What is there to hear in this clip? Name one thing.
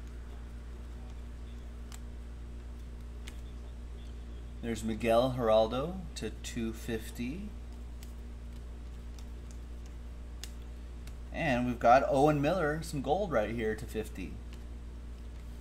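Trading cards slide and click against each other as they are shuffled.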